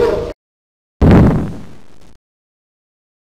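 An explosion booms and fades away.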